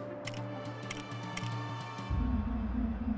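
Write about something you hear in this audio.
Menu selections click and chime.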